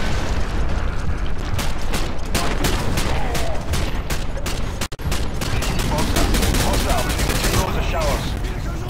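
Gunfire rattles in rapid bursts nearby.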